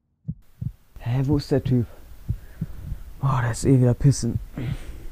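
A young man cries out and groans loudly close by.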